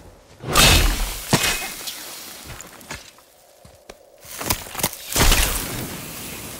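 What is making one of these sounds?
Metal strikes rock with sharp, ringing clangs.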